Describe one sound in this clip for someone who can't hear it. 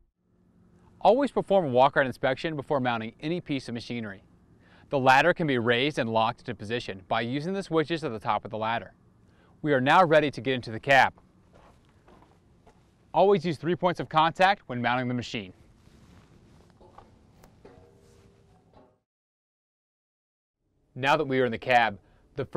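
A young man speaks calmly and clearly into a microphone.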